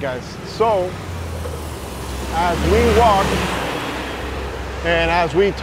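A city bus drives past close by with a loud engine rumble.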